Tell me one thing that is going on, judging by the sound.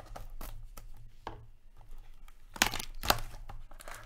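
A foil pack crinkles and tears open.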